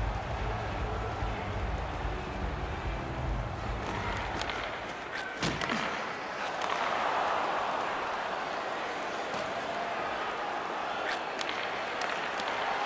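A crowd in a large arena cheers and roars steadily.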